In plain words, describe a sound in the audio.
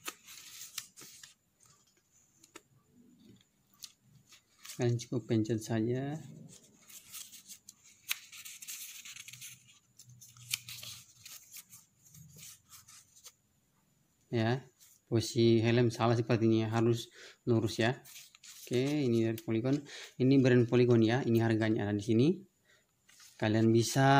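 Paper rustles as pages of a small leaflet are turned.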